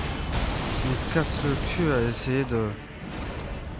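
A loud magical blast roars and crackles.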